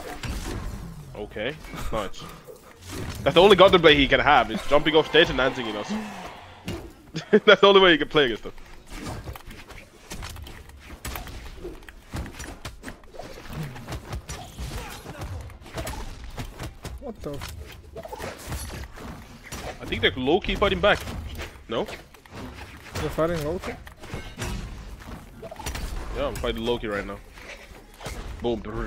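Game hits and whooshes sound in quick bursts.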